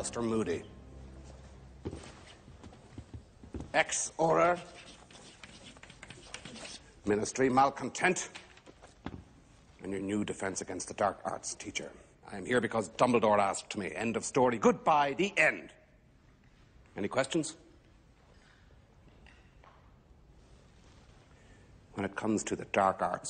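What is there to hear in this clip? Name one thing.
An older man speaks sternly and forcefully, with pauses.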